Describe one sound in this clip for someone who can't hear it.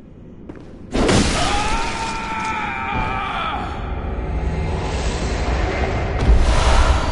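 A blade slashes wetly into flesh.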